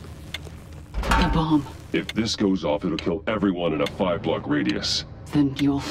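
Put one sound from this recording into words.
A man speaks in a low, gravelly voice, close by.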